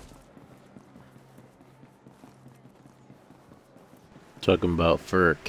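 Footsteps patter quickly on hard pavement.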